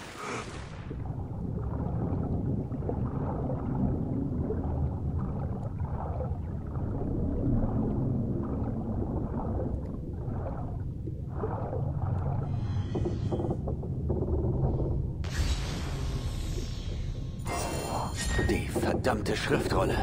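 A muffled underwater rumble drones steadily.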